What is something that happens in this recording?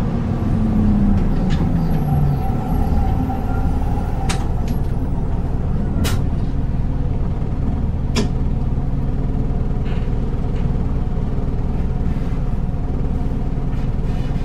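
A diesel city bus engine idles, heard from inside the bus.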